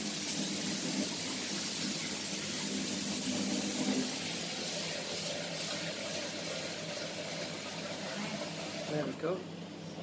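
Water runs from a tap.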